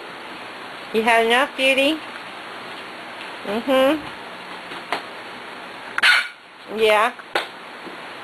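Puppies yelp and bark in high, rising cries.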